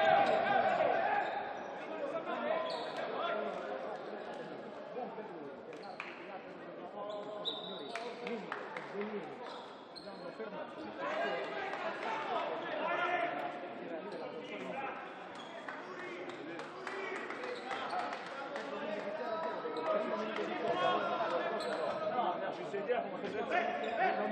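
A crowd of spectators chatters and cheers, echoing in a large indoor hall.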